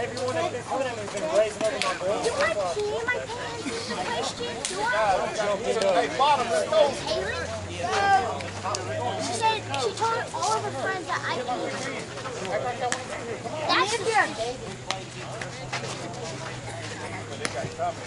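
Several men and women talk and call out nearby, outdoors.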